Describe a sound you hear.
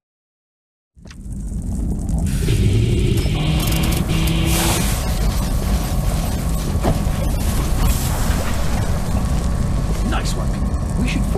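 Molten lava rumbles and roars steadily.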